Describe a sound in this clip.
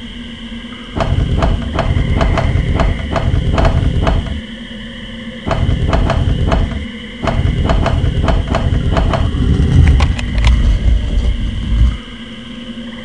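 Heavy stone rings grind and click as they turn.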